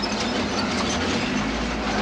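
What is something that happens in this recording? A tank engine rumbles and its tracks clank.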